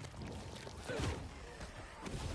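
An explosion bursts with a loud boom.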